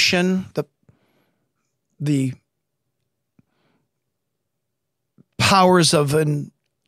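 A middle-aged man speaks calmly into a close microphone, with pauses.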